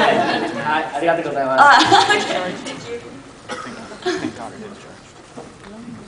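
A young woman speaks and laughs into a microphone in a large echoing hall.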